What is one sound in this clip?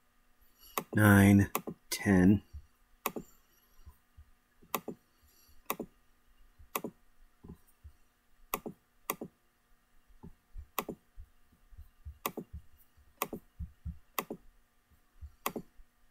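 A computer mouse clicks sharply, again and again.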